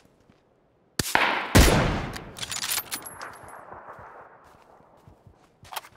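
A rifle fires a loud shot that echoes away.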